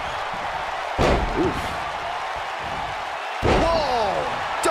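Heavy thuds sound as bodies slam onto the wrestling mat.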